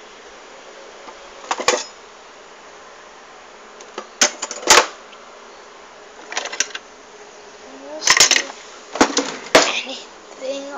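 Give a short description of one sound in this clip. Metal cutlery rattles and clinks in a drawer.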